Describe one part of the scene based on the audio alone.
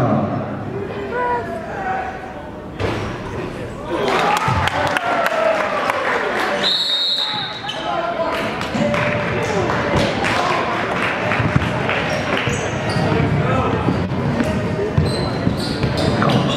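A crowd of spectators cheers and shouts in an echoing hall.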